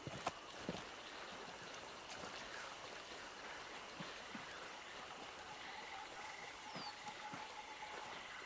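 Footsteps rustle through low plants and grass.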